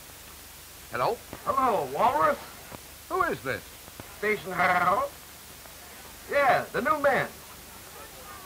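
A middle-aged man speaks on a telephone.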